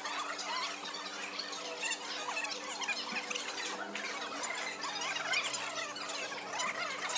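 A fork clinks and scrapes against a ceramic plate.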